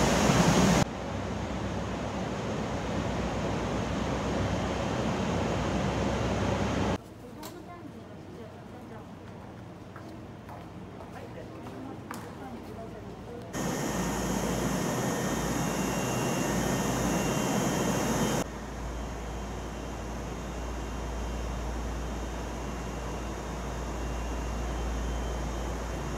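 A stopped train hums steadily.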